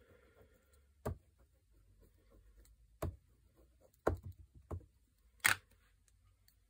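A stamp block taps against an ink pad several times.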